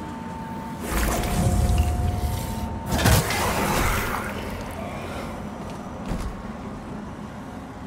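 Footsteps thud on creaking wooden planks.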